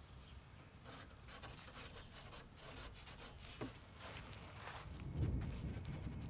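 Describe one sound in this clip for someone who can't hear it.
A strip of tape rustles as it is pressed and peeled along a wooden edge.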